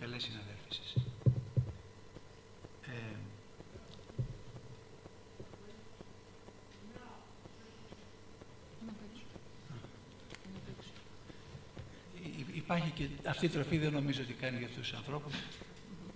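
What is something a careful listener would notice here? A middle-aged man speaks calmly into a microphone in a room with some echo.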